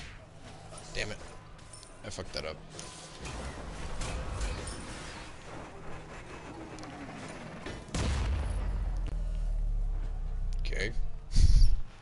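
A young man talks casually into a headset microphone.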